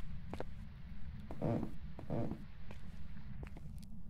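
A door swings open with a creak.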